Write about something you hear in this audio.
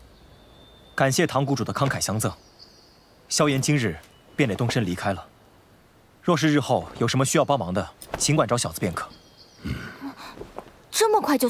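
A young man speaks calmly and clearly.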